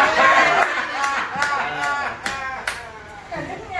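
A man claps his hands a few times.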